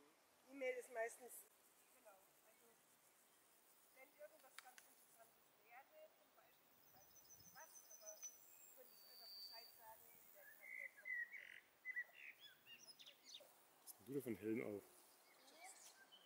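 A young girl speaks nearby.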